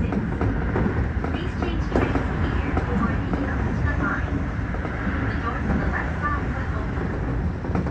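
Another train rushes past close by.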